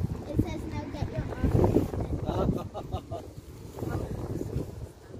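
Wind gusts outdoors across the microphone.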